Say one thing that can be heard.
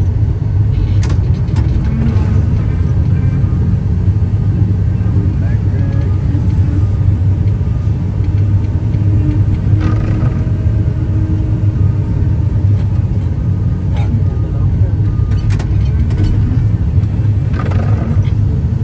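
A hydraulic loader bucket clanks and thuds.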